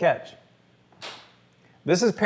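Two hands slap together in a high five.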